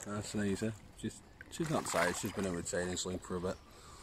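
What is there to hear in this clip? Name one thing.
Water splashes as a fish thrashes in a net.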